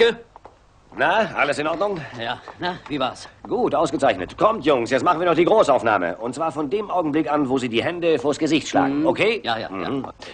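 A man talks calmly nearby.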